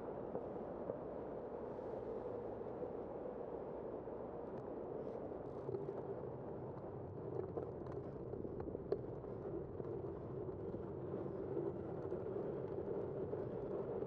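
Wind rushes steadily past while cycling.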